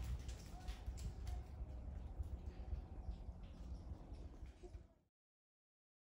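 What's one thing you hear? Wind rustles through tree branches outdoors.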